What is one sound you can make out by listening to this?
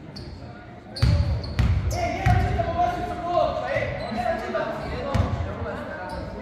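A basketball bounces with heavy thuds on a wooden floor.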